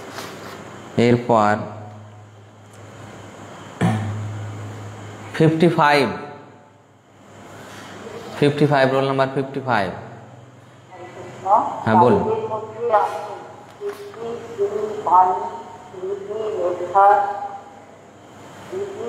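A middle-aged man sings or chants close to a microphone, in long drawn-out phrases.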